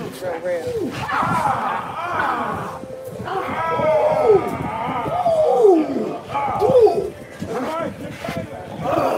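A man talks loudly and excitedly nearby.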